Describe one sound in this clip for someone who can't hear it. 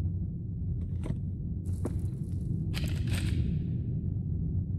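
Paper rustles as a book is put down.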